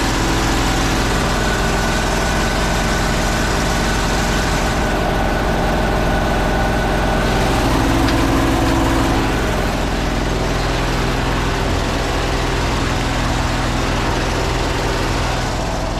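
A pump motor drones steadily nearby.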